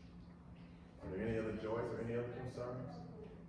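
A man speaks through a microphone and loudspeakers in a large echoing hall.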